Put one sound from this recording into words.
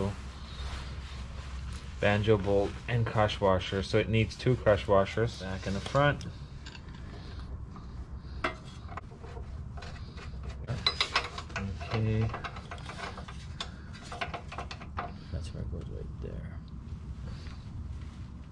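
Metal tools click and clink against car parts.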